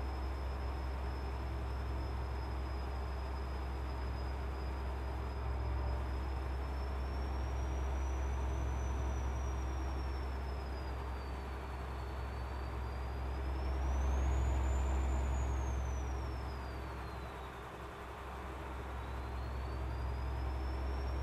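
A truck engine hums steadily, swelling and easing.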